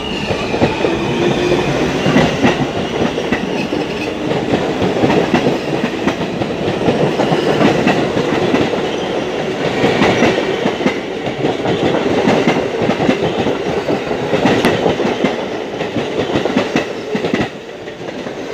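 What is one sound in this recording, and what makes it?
Two subway trains rumble and screech past close by on both sides.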